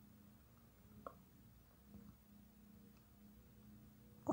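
Sugar pours softly into a plastic jug.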